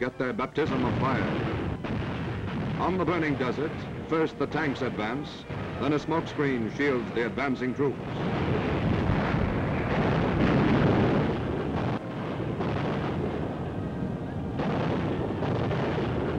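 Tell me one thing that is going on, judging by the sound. Shells explode with heavy booms, one after another.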